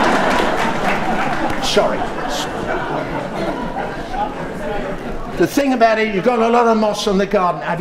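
An elderly man talks calmly into a microphone.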